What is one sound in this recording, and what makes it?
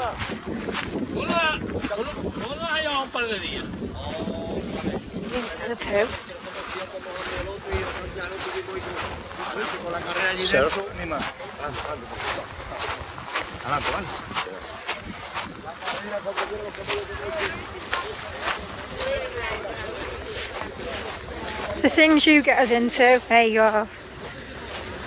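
A camel groans and gurgles loudly close by.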